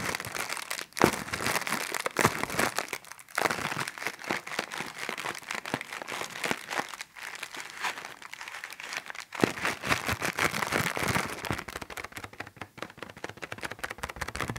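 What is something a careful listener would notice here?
Plastic bubbles pop and click under fingers.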